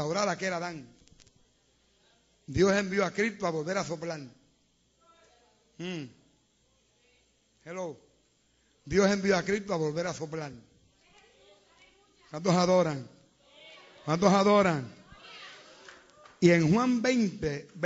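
An elderly man preaches with fervour in short, forceful bursts, with pauses in between.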